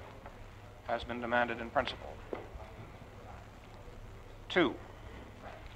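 A man speaks calmly into a microphone, heard in an echoing hall.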